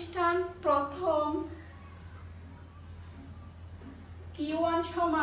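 A woman speaks clearly and steadily close by.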